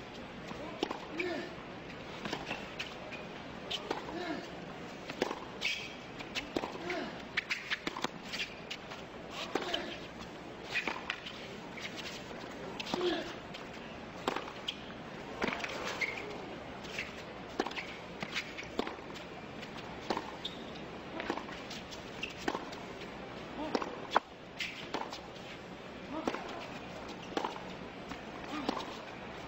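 A tennis ball is struck hard with a racket, back and forth.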